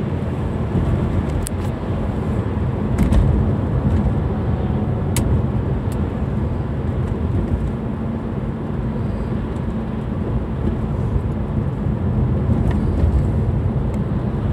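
Tyres rumble low and steadily on the road.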